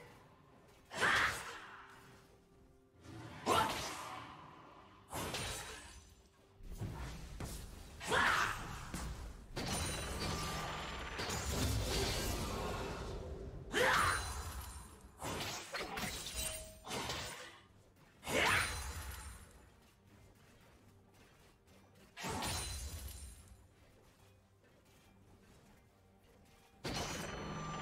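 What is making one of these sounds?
Magic blasts and sword clashes burst in loud bursts during a fight between game characters.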